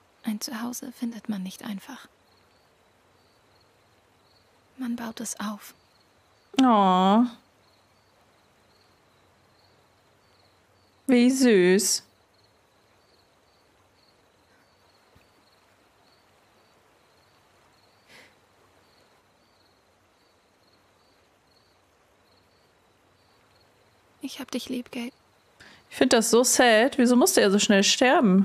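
A young woman talks and exclaims close to a microphone.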